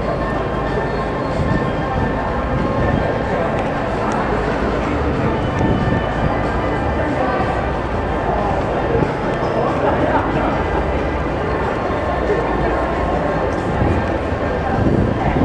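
Wind buffets the microphone outdoors in a large open space.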